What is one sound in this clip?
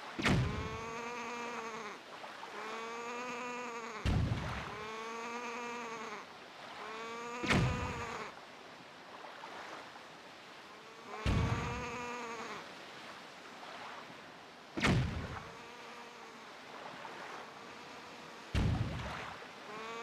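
Thunder cracks sharply and rumbles, again and again.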